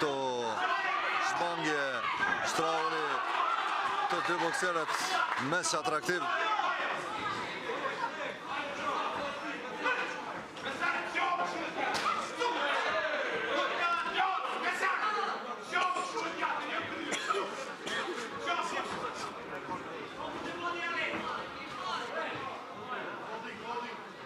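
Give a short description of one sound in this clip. A crowd of spectators shouts and cheers loudly in an echoing hall.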